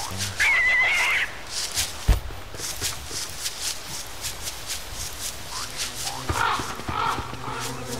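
Footsteps crunch steadily over dry ground.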